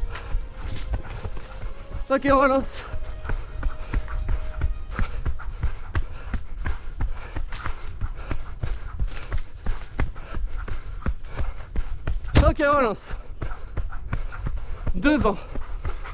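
Footsteps thud quickly on a dirt trail as a person runs.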